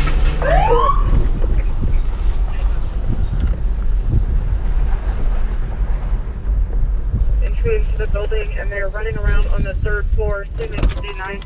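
A car engine rumbles low and steady as the car rolls slowly.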